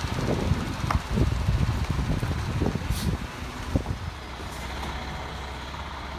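A garbage truck drives slowly away down the street.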